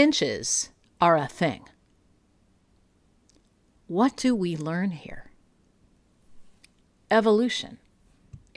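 A woman talks with animation, heard closely through a microphone.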